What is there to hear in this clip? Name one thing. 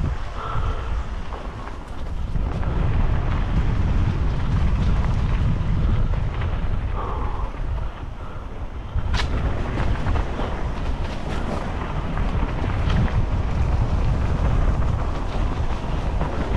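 Dry leaves and twigs crackle under tyres.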